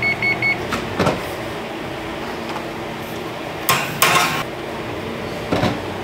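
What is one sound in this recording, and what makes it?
An oven door creaks open and thuds shut.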